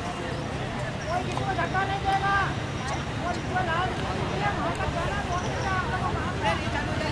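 Children chatter and call out nearby, outdoors.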